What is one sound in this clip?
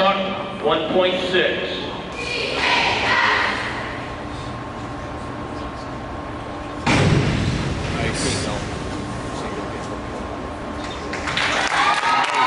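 A crowd of young people chatters and cheers in the echoing hall.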